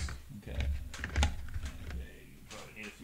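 Plastic game pieces click and tap against a tabletop.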